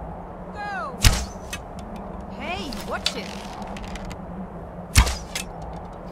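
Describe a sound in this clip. A bowstring twangs as an arrow is loosed with a sharp thud.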